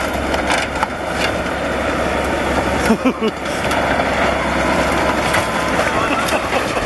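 Metal crunches and screeches as a truck is crushed.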